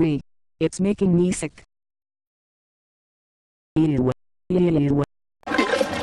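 A young woman speaks in short, upset bursts, close to a microphone.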